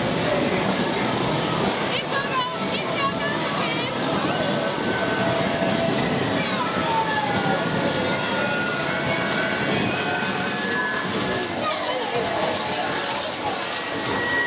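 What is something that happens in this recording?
Women call out cheerfully nearby.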